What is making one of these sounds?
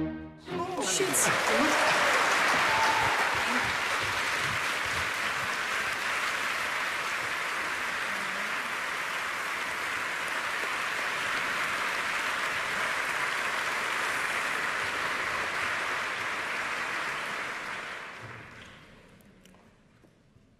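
A large audience applauds loudly in a big hall, then the clapping fades away.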